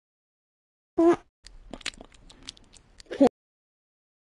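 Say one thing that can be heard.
A cartoon cat munches food with quick crunchy bites.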